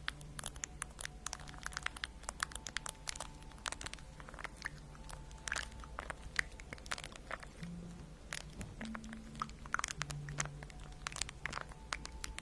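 Fingernails tap and click rapidly on a phone close to a microphone.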